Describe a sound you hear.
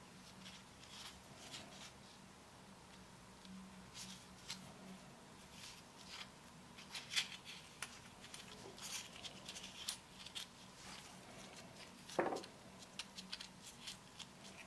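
Metal parts click and scrape as they are turned by hand.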